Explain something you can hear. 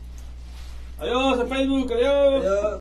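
A man speaks loudly with animation.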